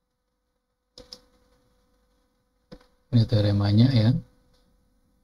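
A middle-aged man speaks calmly into a close microphone.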